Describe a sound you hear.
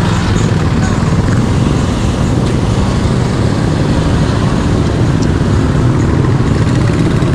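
Traffic drones along a busy street.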